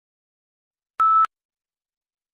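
A short electronic beep sounds once.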